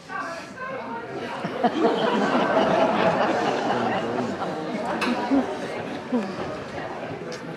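An audience laughs loudly in a hall.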